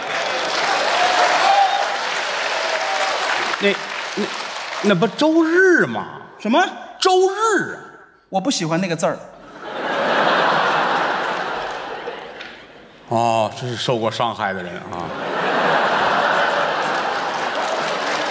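A large audience laughs and applauds.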